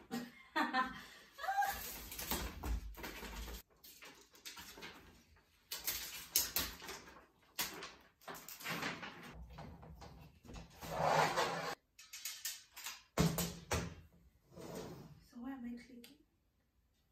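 A metal drying rack rattles and clanks as it is unfolded.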